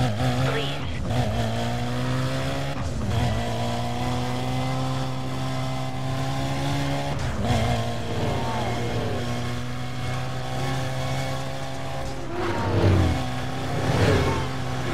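A car engine roars steadily at high revs, shifting gears now and then.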